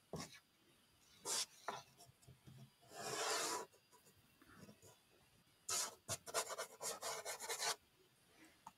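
A dry pastel stick scratches and rubs across paper.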